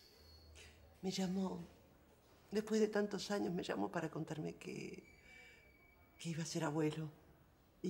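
A middle-aged woman speaks softly and warmly, close by.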